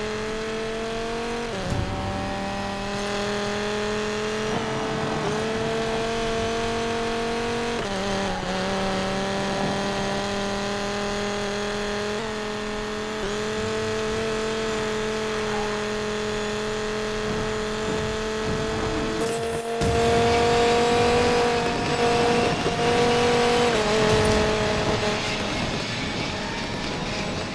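A sports car engine roars at high speed, shifting up through its gears.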